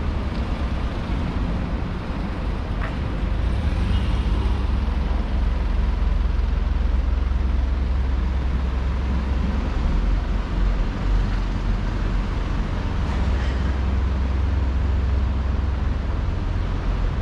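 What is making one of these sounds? Traffic hums steadily on a nearby street.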